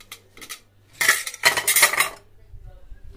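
Plates clatter down into a metal sink.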